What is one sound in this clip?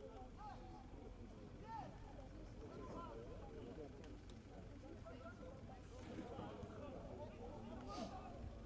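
Football players shout and call to each other across an open outdoor pitch.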